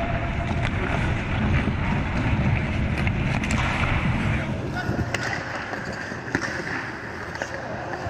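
A goalie's pads thud against the ice as he drops to block.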